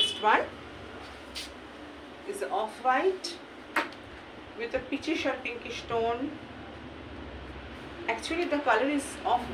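Cloth rustles as a fabric is unfolded.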